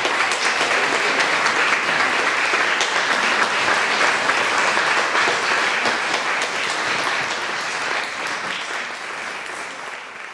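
An audience claps and applauds steadily in an echoing hall, fading toward the end.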